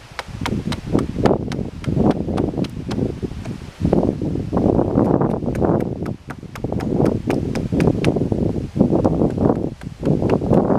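An axe chops at a piece of wood with quick, repeated sharp knocks.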